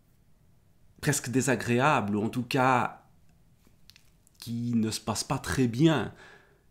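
A man speaks calmly and expressively close to a microphone.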